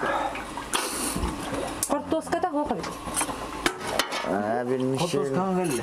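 A ladle clinks against a metal pot.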